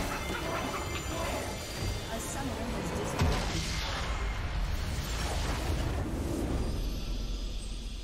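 Game spell effects crash and burst loudly.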